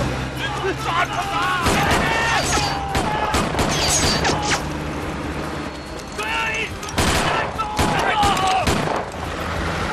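Men shout urgently.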